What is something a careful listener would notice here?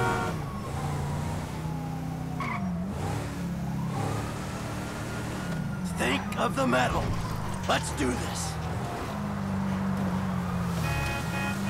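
A car engine hums steadily, rising and dropping in pitch as the gears change.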